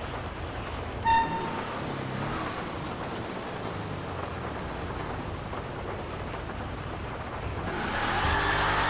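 A car engine hums as the vehicle drives along.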